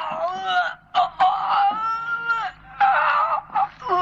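A young man cries out in pain.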